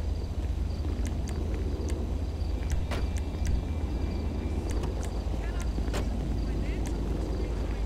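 Short electronic clicks tick several times.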